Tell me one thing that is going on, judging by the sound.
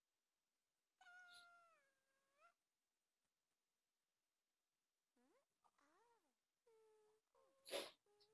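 A cartoonish toddler voice babbles and coos in short bursts.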